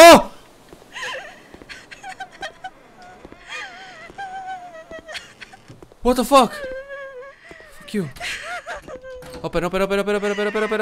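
A young man talks excitedly into a close microphone.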